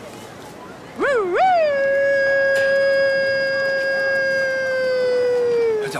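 A young woman sings a long, loud held note.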